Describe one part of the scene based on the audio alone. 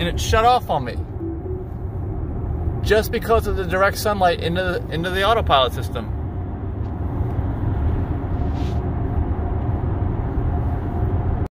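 A car's tyres rumble steadily on the road, heard from inside.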